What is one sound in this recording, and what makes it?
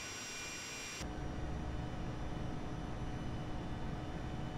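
A low, steady engine rumble drones from inside a cockpit.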